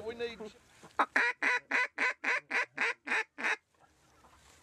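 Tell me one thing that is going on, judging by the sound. A duck call is blown close by in a rapid series of loud, sharp quacks.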